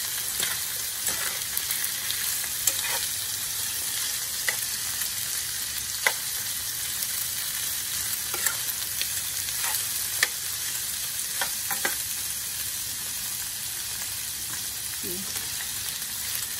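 A spatula scrapes and taps against a pan.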